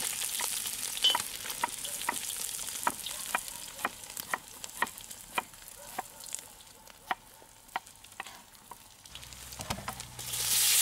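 A wood fire crackles with sharp pops.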